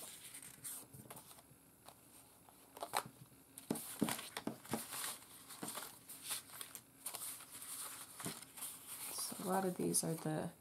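Paper cards rustle and shuffle against each other.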